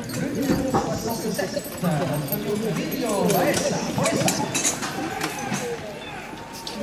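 Carriage wheels crunch over gravel.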